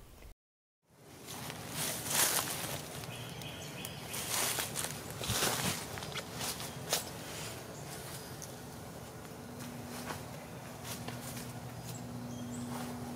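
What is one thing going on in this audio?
Dry leaves rustle and crackle as a woman kneels and works in the ground.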